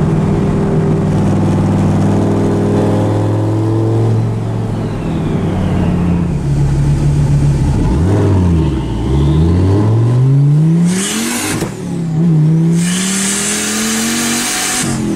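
Tyres roll on the road with a steady low rumble.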